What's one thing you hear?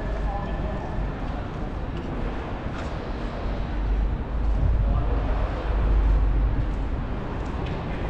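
Wind blows outdoors in gusts.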